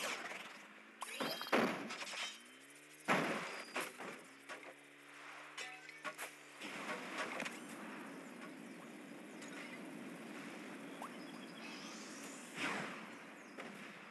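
A small cartoon car engine whirs steadily.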